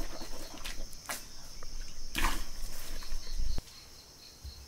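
A man splashes water onto his face.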